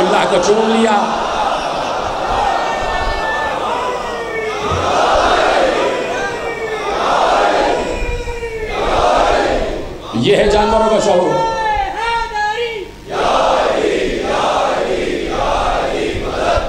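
A man speaks with passion into a microphone, heard through loudspeakers.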